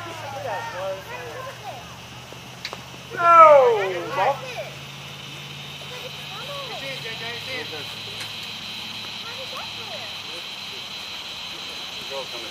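Men call out and talk at a distance outdoors.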